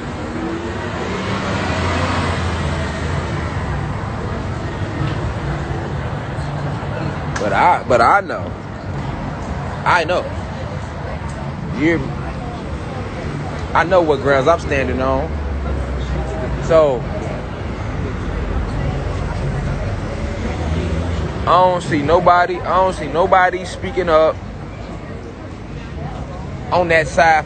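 Street noise and distant crowd chatter rumble outdoors.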